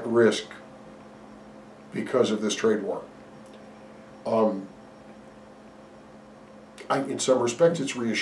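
An older man speaks calmly and haltingly close to a microphone, with pauses.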